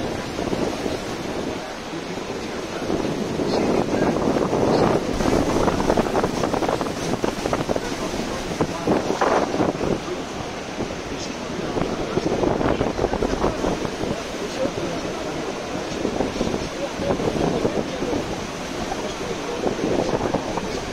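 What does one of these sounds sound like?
A waterfall roars loudly nearby.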